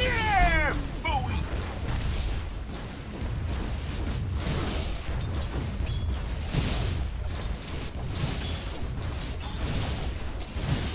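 Game weapons clash and strike repeatedly.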